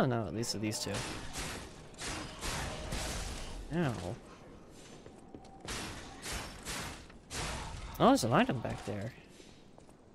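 Sword blades slash and clash in quick strikes.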